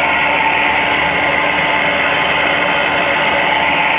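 An electric fan whirs with a steady drone.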